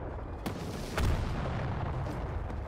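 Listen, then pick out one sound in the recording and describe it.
An explosion booms close ahead.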